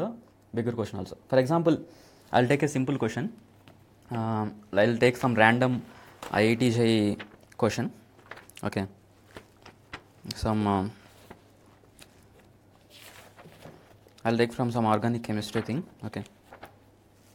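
A man speaks calmly and close to a microphone, in short bursts.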